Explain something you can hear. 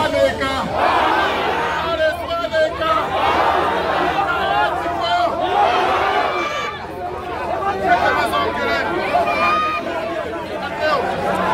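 A crowd of people talks and shouts.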